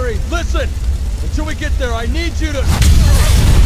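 A man speaks urgently.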